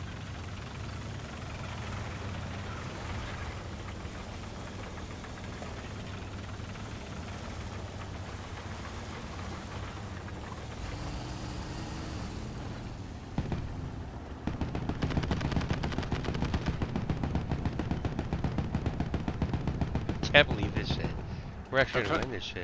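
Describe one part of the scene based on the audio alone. A tank engine rumbles low and steadily, then grows louder and rattles.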